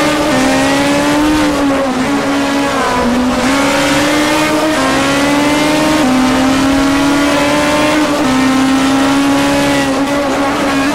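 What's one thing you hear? A race car engine roars at high revs, its pitch rising and dropping sharply as it shifts gears.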